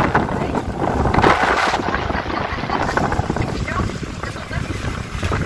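Water splashes and laps against a moving boat's hull.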